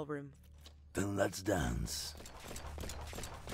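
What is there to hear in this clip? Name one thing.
A gun fires several rapid shots.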